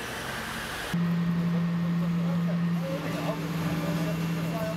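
A ship's engine hums steadily.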